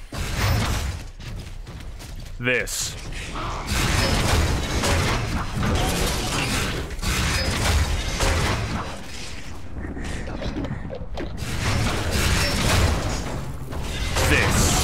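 A large monster roars and thrashes nearby.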